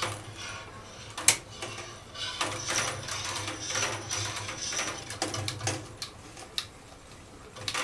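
A wooden paddle stirs and sloshes curds in whey in a metal pot.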